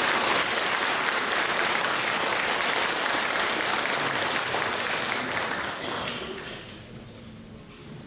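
An audience applauds loudly, then the clapping fades away.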